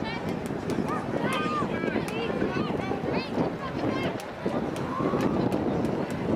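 Young women shout and call to each other outdoors across an open field.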